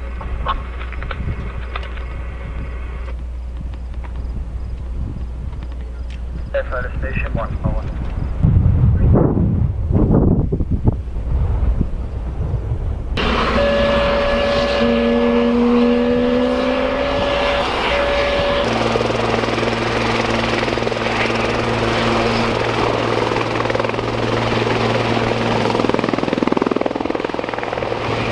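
A helicopter's engine whines and its rotor whirs steadily.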